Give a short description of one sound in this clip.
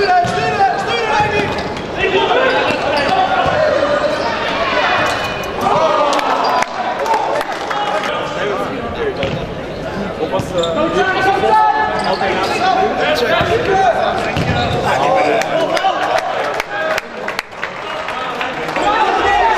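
A ball thuds as it is kicked.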